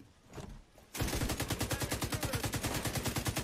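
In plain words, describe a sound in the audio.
A rifle fires in a rapid, steady burst.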